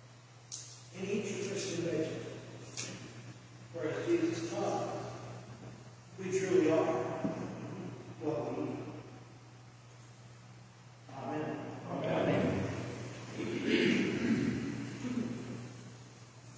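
A man speaks calmly at a distance through a microphone in a large echoing hall.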